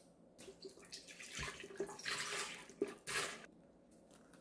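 A banana peel is torn open and rustles.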